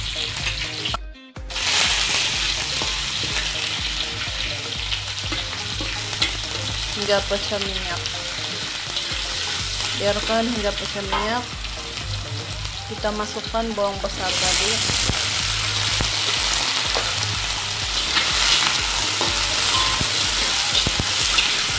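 Oil sizzles steadily in a hot pan.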